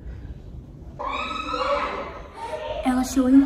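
A girl talks excitedly close to the microphone.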